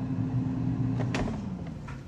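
A fryer basket clunks as it is pulled by its handle.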